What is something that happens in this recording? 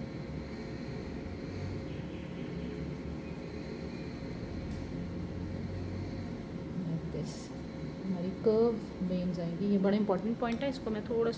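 A paintbrush dabs and strokes softly on a surface.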